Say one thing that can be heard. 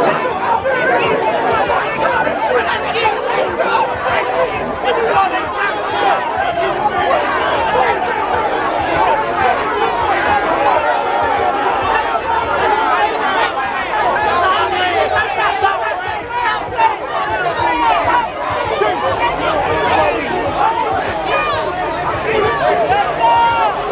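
A large crowd talks, shouts and cheers loudly close by.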